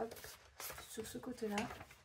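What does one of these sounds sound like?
Paper rustles and flaps in a hand.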